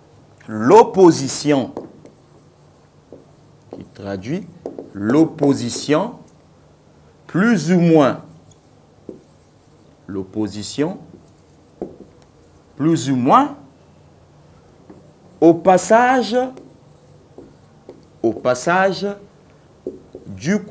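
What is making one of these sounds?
A man speaks calmly in short phrases with pauses, close by.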